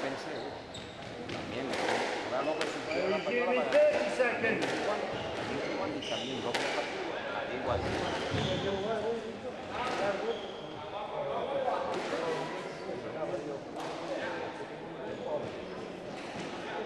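Several people chatter nearby in an echoing hall.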